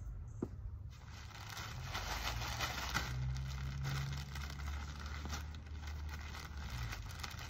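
Potting soil pours from a bag into a bucket with a steady rustle.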